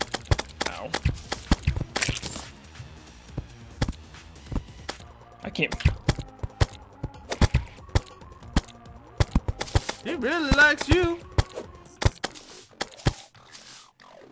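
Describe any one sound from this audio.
Game sound effects of rapid hits and magic blasts pop and crack repeatedly.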